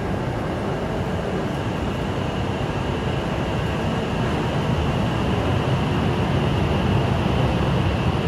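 A high-speed train pulls away, its electric whine rising steadily.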